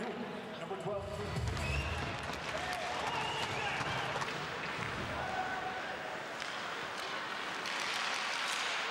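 Ice hockey skates scrape across the ice.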